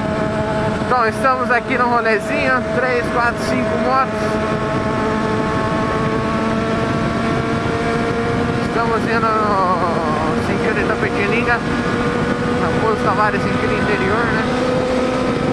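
A motorcycle engine revs up and down in quick bursts.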